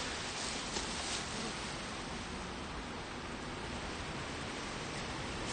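Bees buzz steadily around an open hive.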